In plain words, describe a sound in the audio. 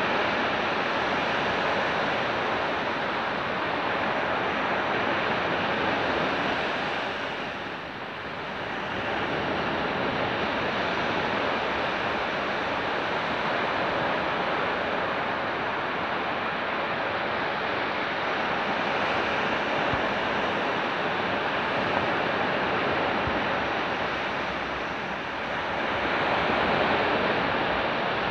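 Waves break and wash onto a beach in a steady roar.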